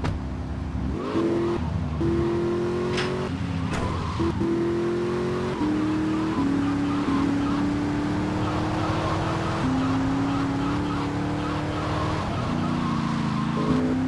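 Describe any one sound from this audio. A car engine revs up repeatedly as it shifts through gears.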